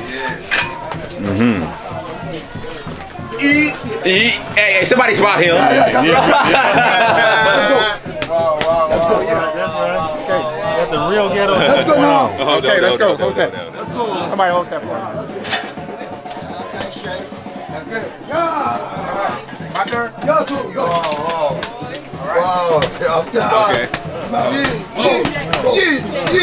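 Several men talk and call out loudly at once, close by.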